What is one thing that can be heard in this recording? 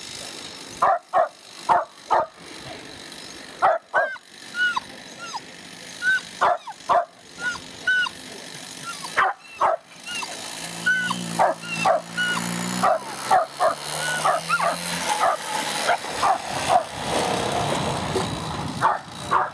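A dog yelps and barks excitedly.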